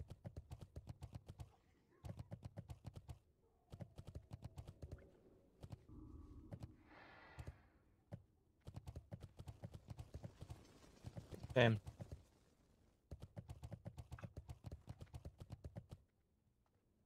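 Footsteps patter quickly and evenly on the ground.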